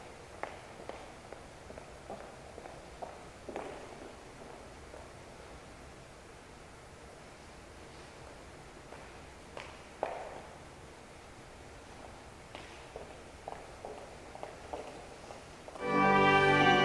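Footsteps click and echo in a large, reverberant hall.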